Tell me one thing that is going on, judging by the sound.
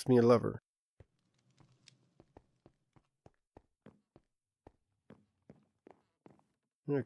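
Footsteps tap softly and evenly on a hard floor.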